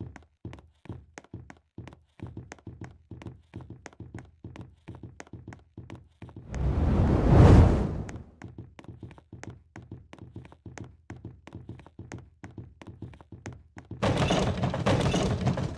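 Footsteps patter quickly and steadily on the ground.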